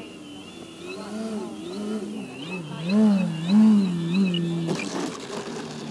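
A model plane's electric motor whines, rising and falling.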